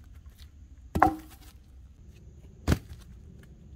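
A log thuds onto the ground.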